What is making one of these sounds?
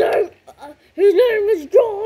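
Plastic toy bricks click and rattle under fingers.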